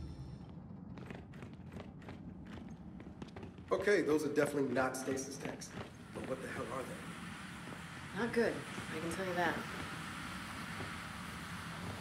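Heavy boots thud on a metal floor.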